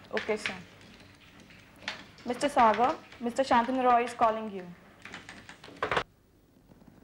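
A young woman speaks with animation into a telephone handset.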